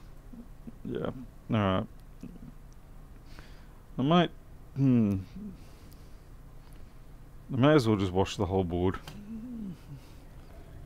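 A man speaks calmly into a close microphone in short bursts.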